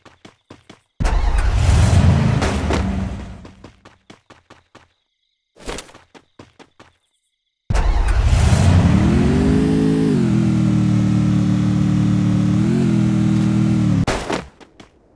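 A motorbike engine revs and roars.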